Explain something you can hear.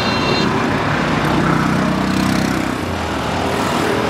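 A motor rickshaw engine putters nearby.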